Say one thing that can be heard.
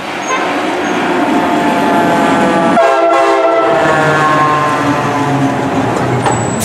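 A fire engine's horn blares in long blasts.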